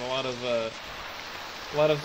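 A fire extinguisher hisses as it sprays.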